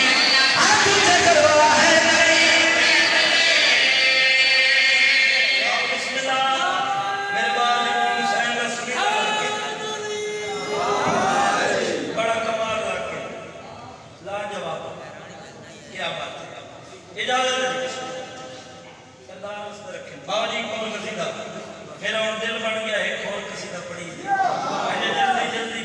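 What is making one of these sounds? A man sings a mournful chant loudly through a microphone and loudspeakers.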